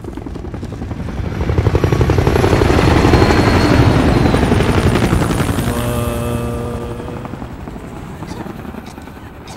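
A helicopter roars overhead with thudding rotor blades, then fades away.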